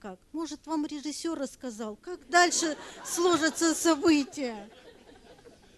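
A woman speaks calmly through a microphone in a large hall.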